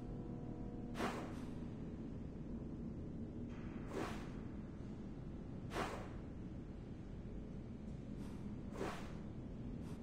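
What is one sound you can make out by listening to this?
Soft whooshes play now and then as a game map zooms in and out.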